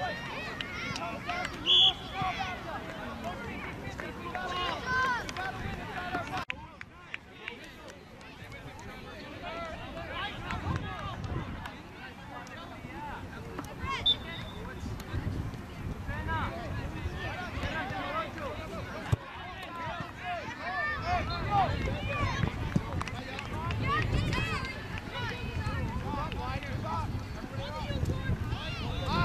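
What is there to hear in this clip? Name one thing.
Spectators shout and cheer from the sidelines.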